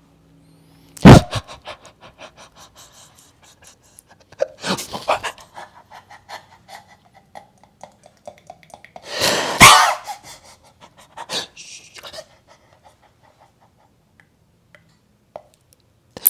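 A man laughs loudly and wildly.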